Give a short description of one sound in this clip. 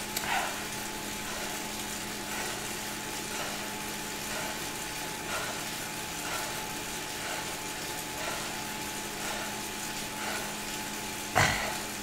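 An indoor bike trainer hums steadily as a rider pedals.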